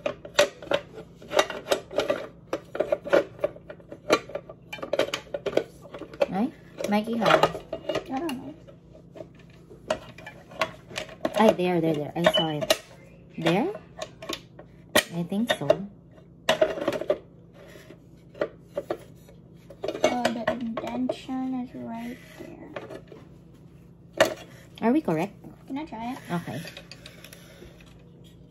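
Metal cooking plates clink and click.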